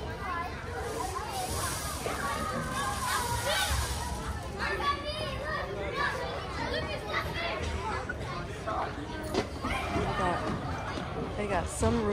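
Children shout and chatter with high voices nearby, outdoors.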